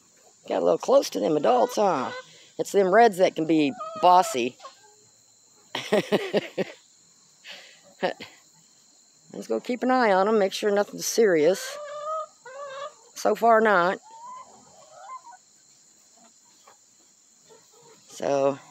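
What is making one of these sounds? Chickens cluck and squawk nearby.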